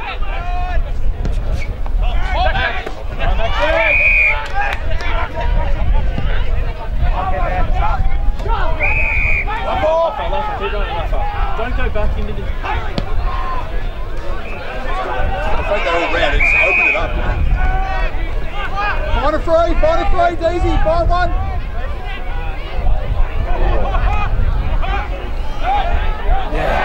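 Young men shout and call out to each other.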